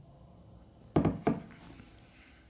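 A glass knocks twice against a wooden table.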